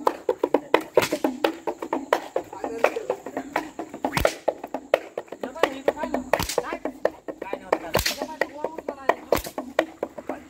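A rope whip cracks loudly, again and again.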